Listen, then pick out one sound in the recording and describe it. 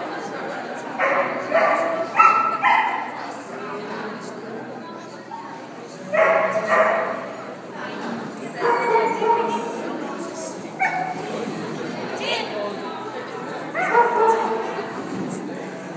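A woman calls out commands to a dog with animation, echoing in a large hall.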